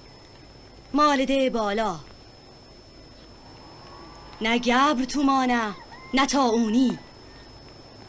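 A young woman calls out loudly in a strained voice, heard outdoors.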